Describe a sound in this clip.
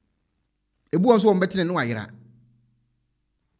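A man speaks calmly and close into a microphone.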